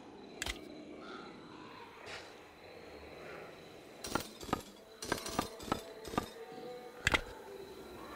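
Heavy metal discs click and clunk as they slide and turn into place.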